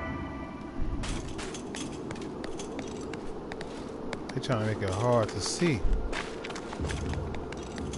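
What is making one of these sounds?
Heavy footsteps thud quickly on hard ground.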